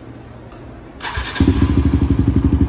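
A single-cylinder four-stroke dirt bike engine starts up.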